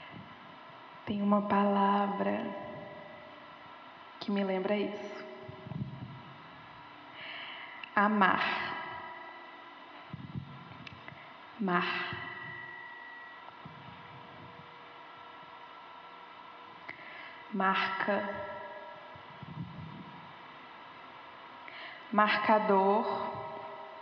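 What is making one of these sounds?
A woman speaks loudly in short bursts through a microphone in a large echoing room.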